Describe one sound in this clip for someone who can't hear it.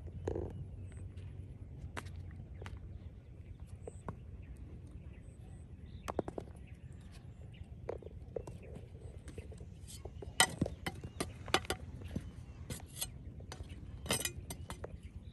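A stick knocks and scrapes against stones.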